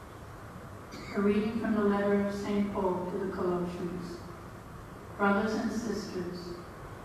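An elderly man sings slowly through a microphone.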